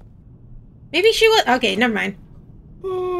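A young woman exclaims loudly into a microphone.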